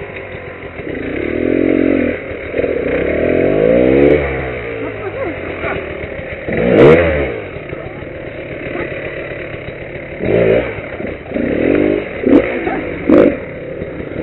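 A dirt bike engine revs loudly in bursts.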